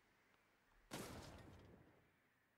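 A vehicle fires a burst of laser shots.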